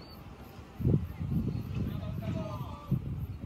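Men call out across an open field.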